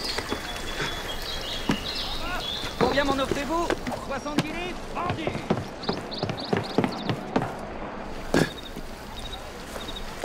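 Footsteps patter quickly over rooftops and wooden planks.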